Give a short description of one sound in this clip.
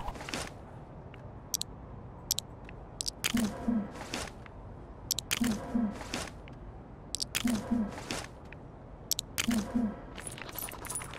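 Short electronic menu blips sound in a steady repeating pattern.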